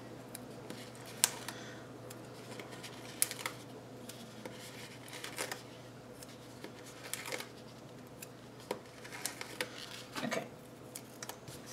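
Paper stickers rustle and crinkle as they are peeled and handled.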